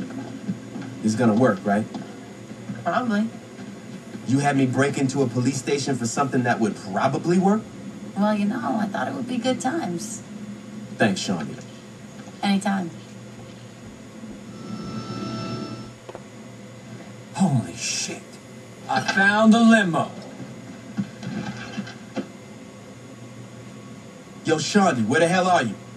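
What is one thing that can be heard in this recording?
Men and women talk with animation, heard through a television speaker in a room.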